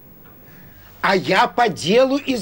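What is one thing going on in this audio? An elderly man speaks on a phone.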